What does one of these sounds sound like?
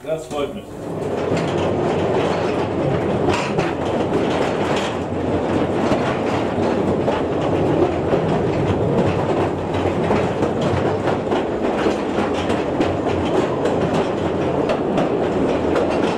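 A mine train rumbles and rattles along its rails.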